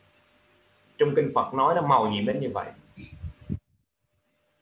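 A man speaks calmly and steadily into a close microphone.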